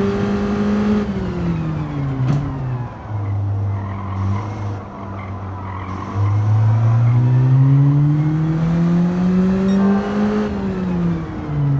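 A racing car engine drops in pitch as the car brakes and shifts down.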